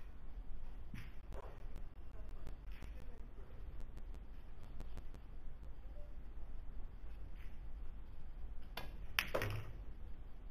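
Billiard balls click sharply together.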